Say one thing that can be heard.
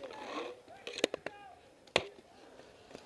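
A paintball gun fires a few sharp pops close by.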